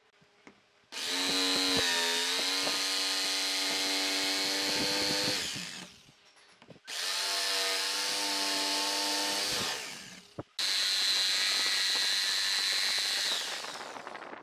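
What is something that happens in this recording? A jigsaw cuts through wood.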